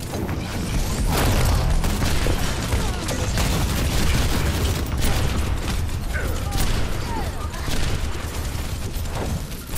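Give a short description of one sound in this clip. A game's gunfire and blasts sound in rapid bursts.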